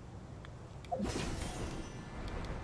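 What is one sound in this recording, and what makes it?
A burst of shimmering chimes rings out.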